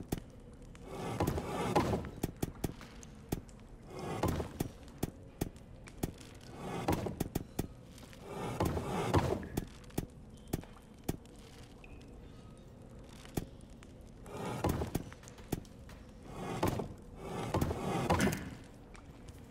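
Heavy stone discs grind as they turn.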